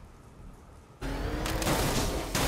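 An armoured car's engine roars as it speeds along.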